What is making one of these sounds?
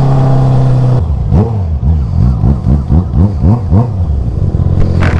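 A motorcycle engine revs up and down in quick bursts.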